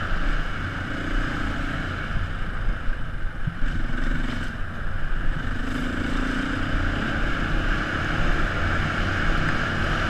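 A dirt bike engine drones steadily up close.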